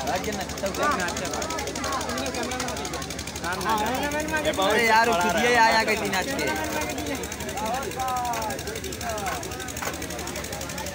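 A crowd of men and women chatters and calls out close by, outdoors.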